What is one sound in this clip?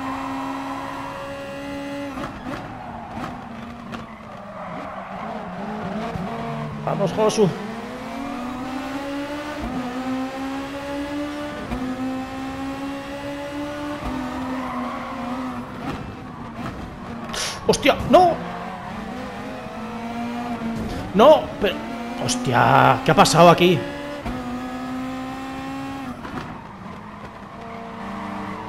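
A racing car engine roars steadily, rising and falling in pitch.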